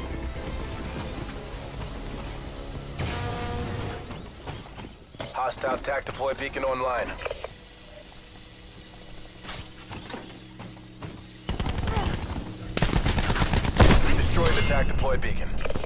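A small remote-control car's electric motor whines as it drives.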